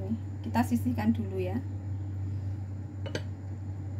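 A block of tofu is set down on a plate with a soft tap.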